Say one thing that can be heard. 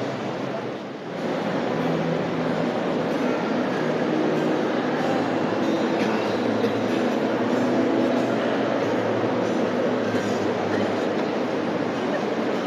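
A large crowd chatters and murmurs in a big echoing hall.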